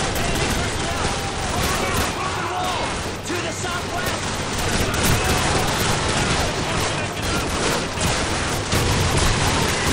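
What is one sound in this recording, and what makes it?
Gunshots crack repeatedly amid heavy gunfire.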